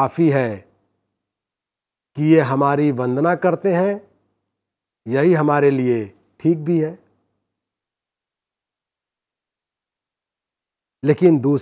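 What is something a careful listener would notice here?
A middle-aged man speaks with animation into a close microphone, pausing between phrases.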